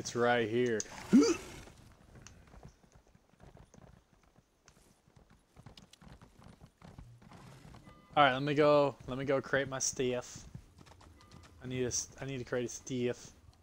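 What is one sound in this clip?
A horse's hooves clop on wooden planks.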